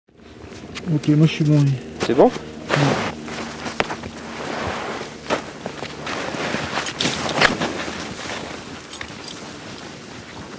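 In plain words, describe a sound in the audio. Skis scrape and hiss over snow.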